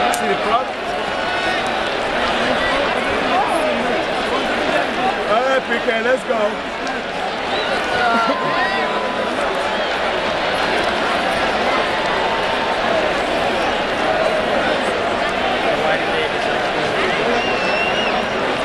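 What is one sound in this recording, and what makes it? A large stadium crowd roars and chatters steadily throughout.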